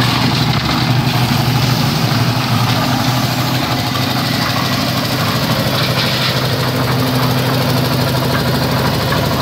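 A shovel scrapes wet concrete.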